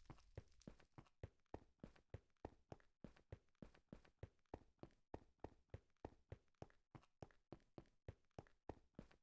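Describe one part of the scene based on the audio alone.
Quick footsteps crunch steadily on stone.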